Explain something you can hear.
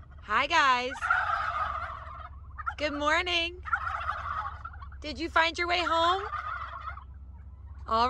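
A flock of turkeys gobbles in unison.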